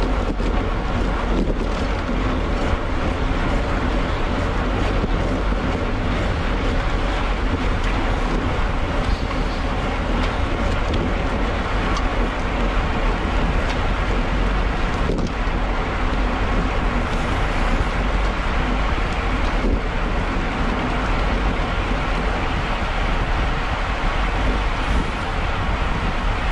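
Wind rushes loudly past a bicycle at speed.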